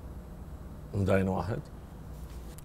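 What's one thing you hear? A middle-aged man speaks with animation through a microphone.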